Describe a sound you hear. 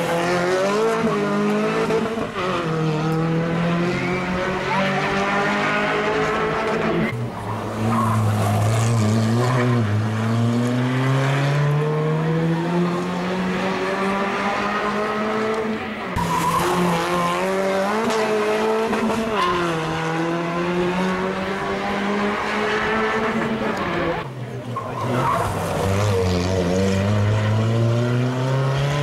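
Rally car engines roar and rev up and down as cars speed past one after another.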